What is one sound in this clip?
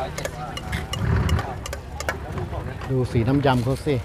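A metal spoon stirs and clinks in a steel bowl.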